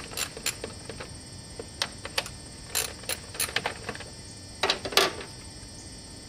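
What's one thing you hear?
Metal tools click and clank against a car engine.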